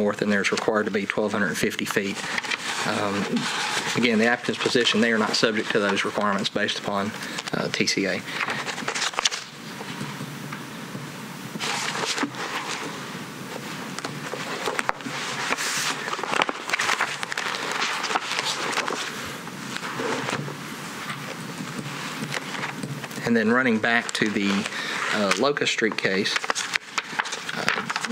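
Paper rustles as a man handles a sheet.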